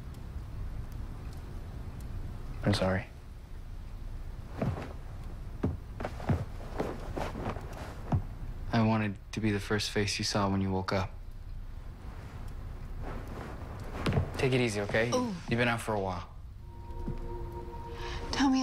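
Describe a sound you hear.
A young woman speaks, upset.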